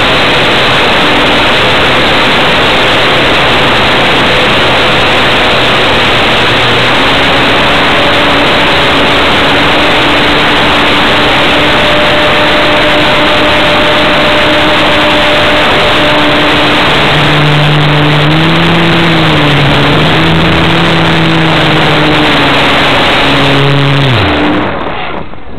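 A model plane's electric motor whines steadily, shifting pitch as it flies.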